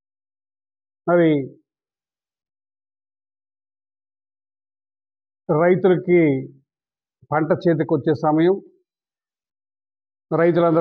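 A middle-aged man speaks calmly into a close microphone, with long pauses.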